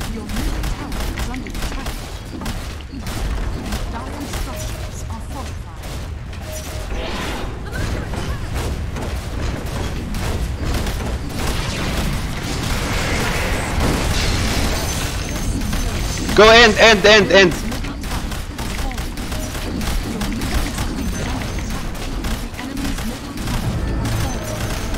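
Video game battle effects clash and crackle.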